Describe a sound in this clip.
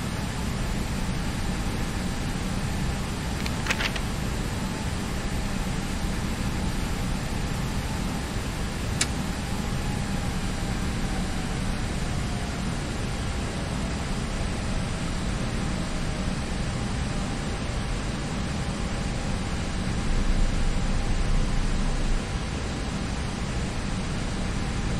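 Jet engines rumble steadily as an airliner taxis.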